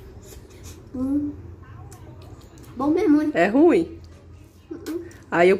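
A young boy licks and slurps an ice pop.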